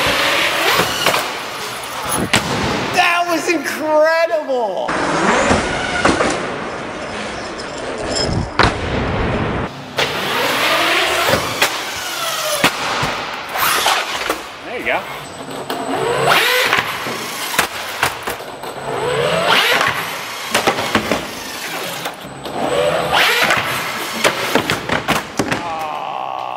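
Plastic wheels bang and clatter on ramps.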